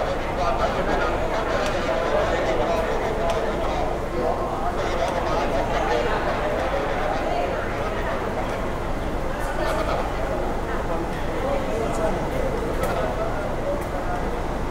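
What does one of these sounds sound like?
A crowd of men and women chatter in a busy echoing hall.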